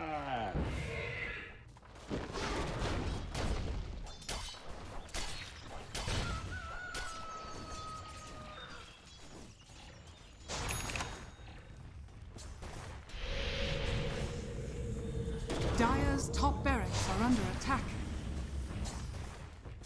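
Magic blasts and weapon hits crackle and thud in a fast video game battle.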